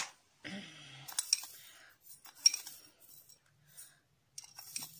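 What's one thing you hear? A spoon scoops dry seeds with a soft rattle.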